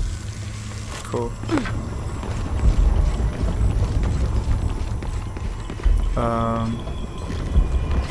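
Footsteps thud on creaking wooden planks.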